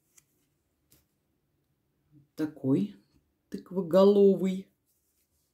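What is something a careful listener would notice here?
A plastic sticker crinkles faintly as fingers handle it.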